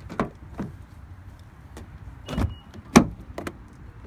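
A car door clicks and thumps open.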